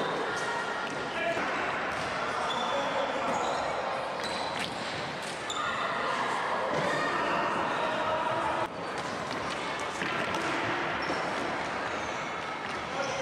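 Shoes squeak on a hall floor.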